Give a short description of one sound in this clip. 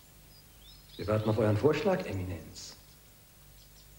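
A man speaks firmly and clearly, close by.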